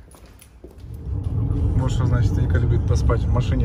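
A car engine rumbles steadily from inside the moving car.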